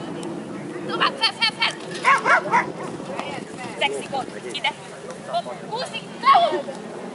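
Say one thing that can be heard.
A young woman calls out short commands with animation.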